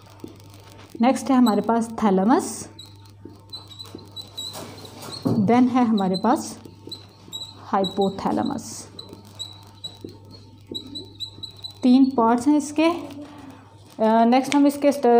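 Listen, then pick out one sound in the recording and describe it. A woman speaks calmly and clearly, as if explaining, close by.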